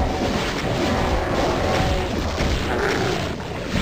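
Fireballs whoosh and explode.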